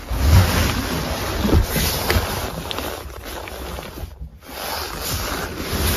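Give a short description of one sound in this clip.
A hand pats a padded armrest with soft thumps.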